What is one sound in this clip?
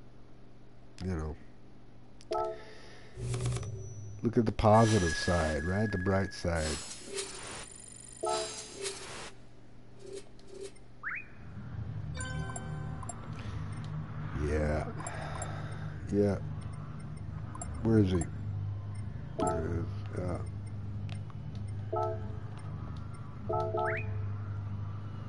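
Short electronic menu chimes beep now and then.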